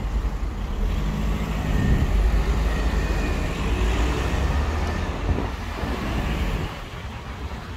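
A bus engine rumbles close by as it passes.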